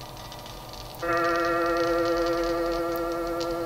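A machine hums with a steady, ringing tone.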